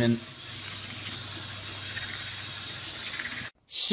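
A toothbrush scrubs briskly against teeth.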